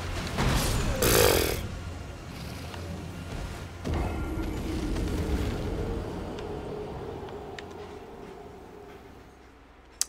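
Loud crashing and rumbling from a fight die away slowly.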